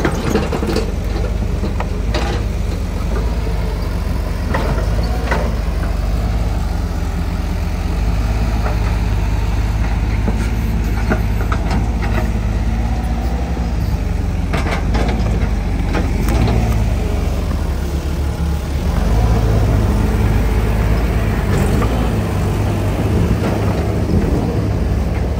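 Excavator engines rumble steadily outdoors.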